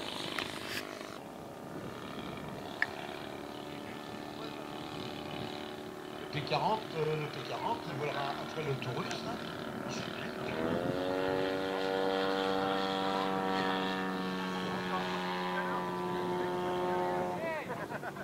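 A small propeller plane engine drones steadily overhead, its pitch shifting as it turns.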